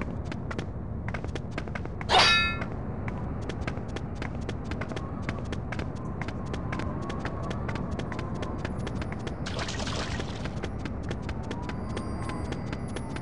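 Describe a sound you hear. Footsteps patter quickly on stone.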